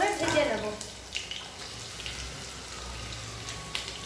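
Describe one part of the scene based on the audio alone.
Chopped onions drop into hot oil with a sizzle.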